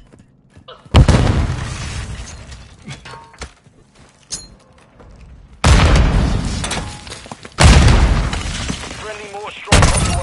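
Loud gunshots boom and echo down a hallway.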